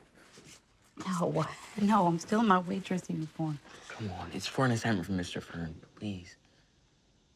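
A woman speaks tearfully and sobs close by.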